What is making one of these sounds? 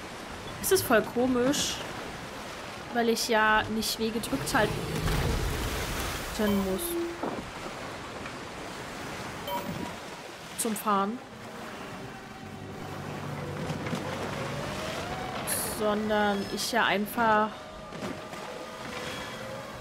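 Water rushes and splashes against the hull of a sailing boat.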